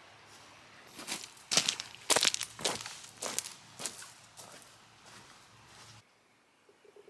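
Boots crunch on gravel and dry leaves.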